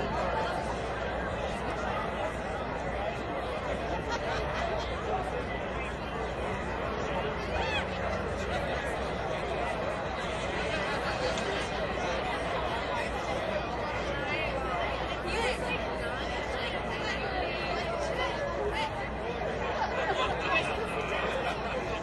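A large outdoor crowd chatters steadily in the distance.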